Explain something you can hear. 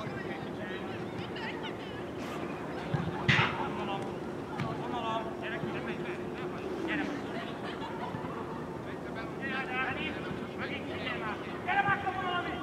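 Men and boys call out and chatter outdoors at a distance.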